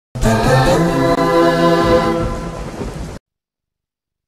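A young woman sings.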